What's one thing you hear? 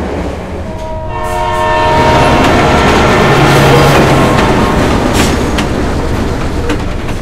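A train rushes past with a loud rising whoosh.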